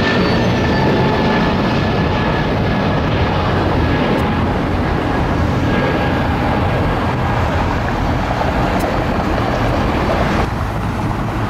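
A jet airliner roars loudly as it climbs overhead.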